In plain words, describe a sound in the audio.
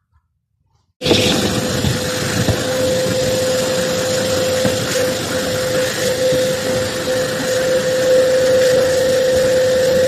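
A vacuum cleaner runs with a loud, steady whine.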